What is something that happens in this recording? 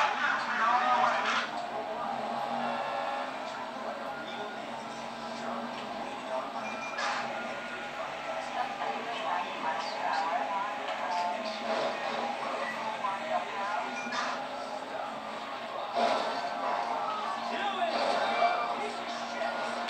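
A car engine revs and roars through a television's small speakers.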